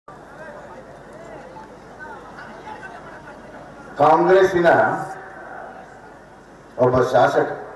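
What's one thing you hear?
A middle-aged man speaks loudly and forcefully into a microphone over a loudspeaker system.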